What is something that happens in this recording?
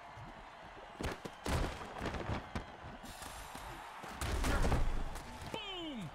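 Armoured players crash into each other with heavy thuds.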